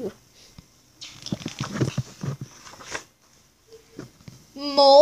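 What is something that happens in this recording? Paper pages rustle under a hand.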